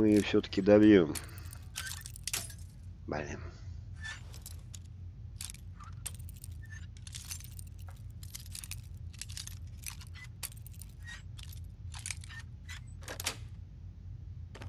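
Metal lock picks scrape and click inside a lock.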